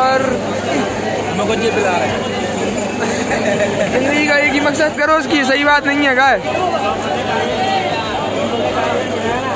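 A crowd murmurs in a busy outdoor street.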